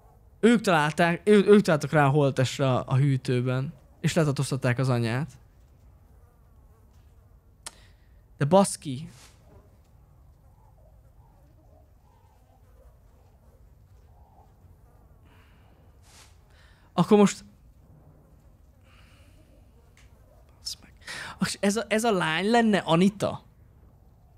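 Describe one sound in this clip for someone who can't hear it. A young man talks close to a microphone, with animation.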